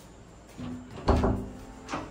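A door handle clicks as it is pressed.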